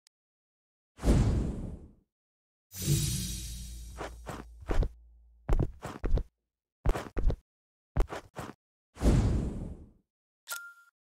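A soft whoosh sweeps past, over and over.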